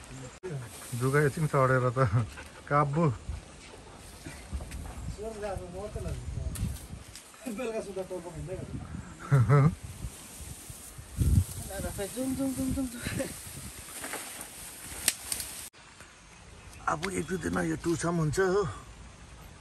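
A young man talks nearby in a casual way.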